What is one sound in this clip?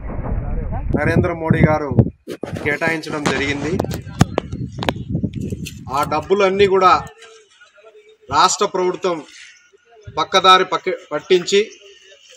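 A man speaks to a microphone outdoors, addressing listeners with animation.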